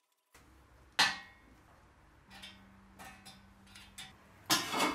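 Metal parts clink and knock together.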